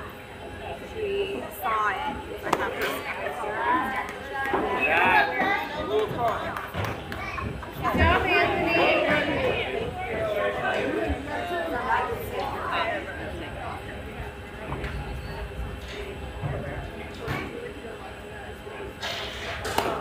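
Young women chant and call out from a distance.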